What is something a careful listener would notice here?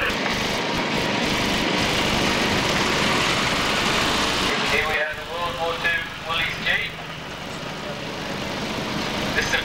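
A truck engine rumbles.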